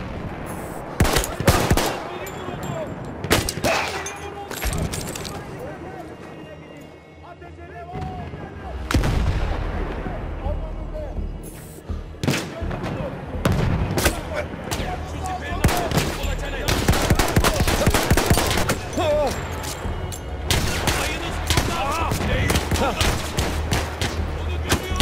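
Pistol shots crack loudly, one at a time.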